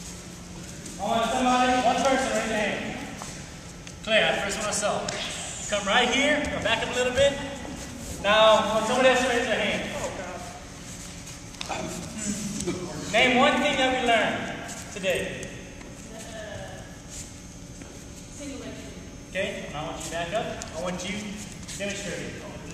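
A young man instructs a group in an echoing hall.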